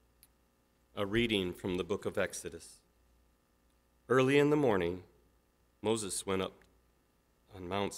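A middle-aged man reads out calmly through a microphone in a large echoing hall.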